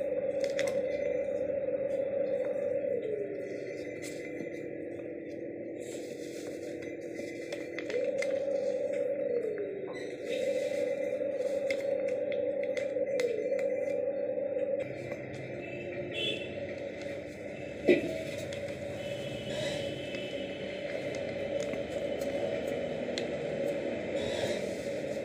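Paper rustles and creases as it is folded by hand.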